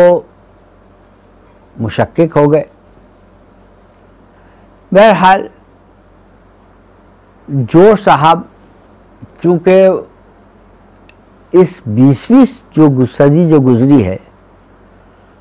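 An elderly man speaks slowly and deliberately, close to a microphone, with long pauses.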